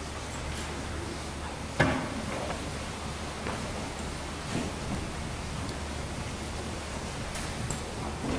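Footsteps shuffle softly on a carpeted floor.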